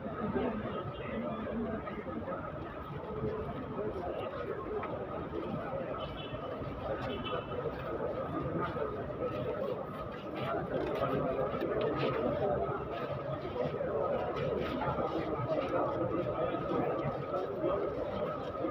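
A crowd of men murmurs and talks nearby outdoors.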